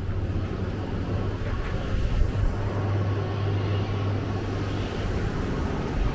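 Automatic glass doors slide open.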